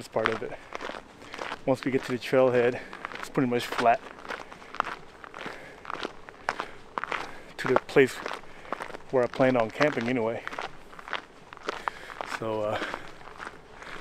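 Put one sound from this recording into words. A young man talks calmly and close to a microphone, outdoors.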